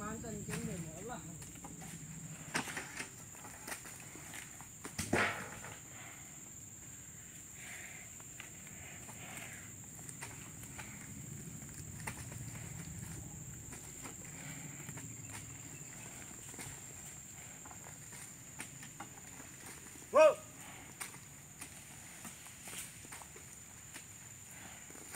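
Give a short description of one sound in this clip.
A buffalo tears and munches grass.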